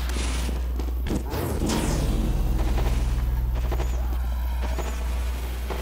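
A game's healing beam hums steadily.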